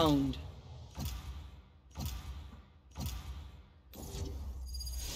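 A game countdown ticks once a second with sharp hits.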